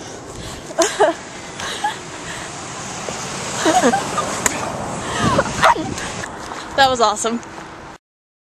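A young woman talks and laughs close by.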